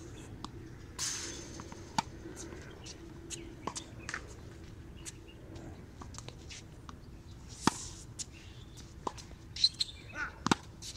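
A tennis racket strikes a ball with a sharp pop, outdoors.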